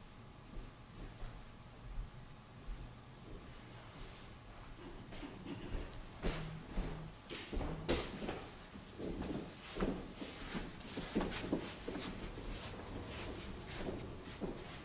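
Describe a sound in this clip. A piano plays softly in an echoing hall.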